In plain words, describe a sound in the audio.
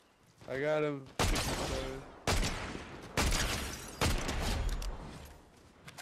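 Sniper rifle shots crack loudly, one at a time.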